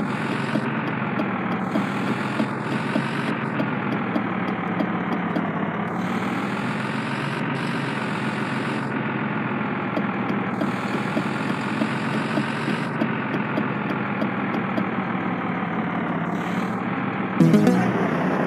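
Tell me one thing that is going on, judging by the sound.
A bus engine hums steadily, its pitch rising and falling with speed.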